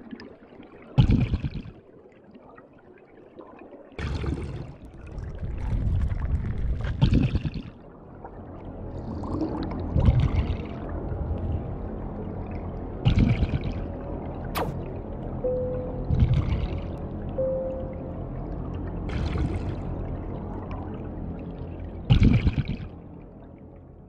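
Air bubbles burst and gurgle from a diver's breathing underwater, every few seconds.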